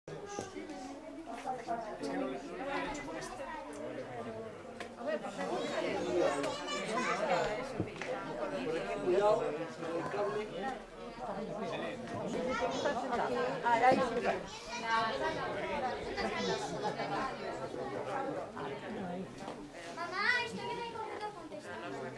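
Several men and women chat nearby outdoors.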